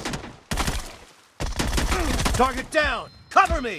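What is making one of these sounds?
Rifle shots ring out in rapid bursts.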